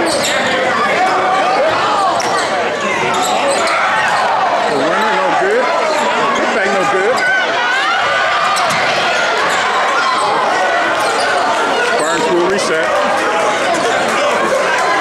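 A crowd in a gym cheers and shouts.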